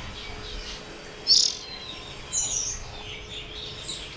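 A caged bird chirps close by.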